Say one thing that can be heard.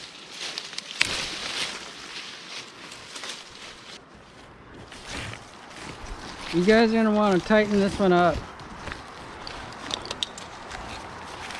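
Leafy branches rustle and brush.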